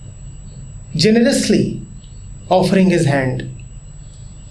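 A man speaks calmly and close by, in short phrases.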